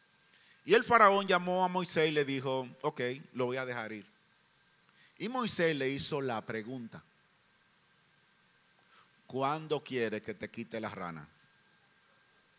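A middle-aged man speaks with emphasis into a microphone, in short bursts with pauses.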